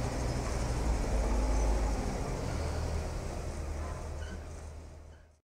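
A heavy truck engine rumbles low as the truck rolls slowly past.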